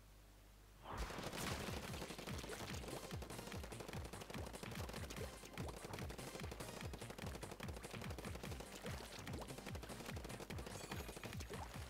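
A cartoonish ink gun fires rapid, wet splattering shots.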